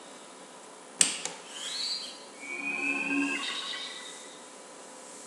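A sharp burst is followed by a bright, shimmering magical chime that rises and fades.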